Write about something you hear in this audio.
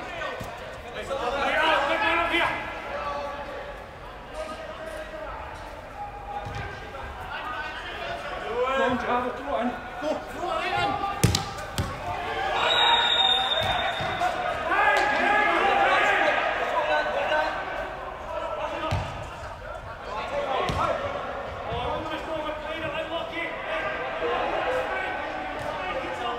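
Women shout and call out to each other in a large echoing hall.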